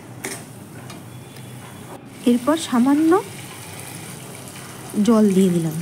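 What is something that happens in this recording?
Water pours into a pan.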